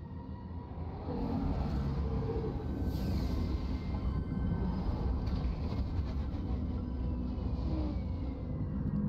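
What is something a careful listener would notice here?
A large dropship's engines roar as it hovers down to land.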